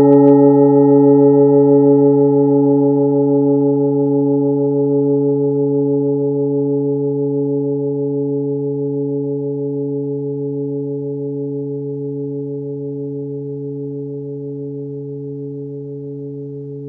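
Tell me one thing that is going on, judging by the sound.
A metal singing bowl rings after a strike, with a deep, wavering hum that slowly fades.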